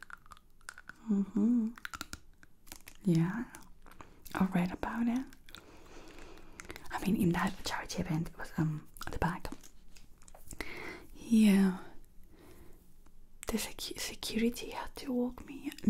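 A young woman whispers softly and closely into a microphone.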